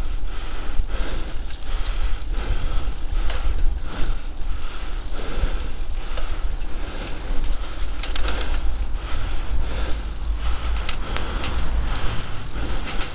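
Wind buffets and rumbles steadily outdoors.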